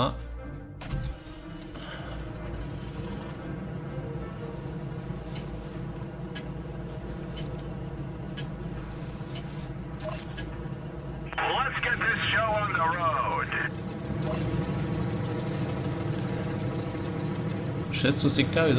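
A tank engine rumbles and idles steadily.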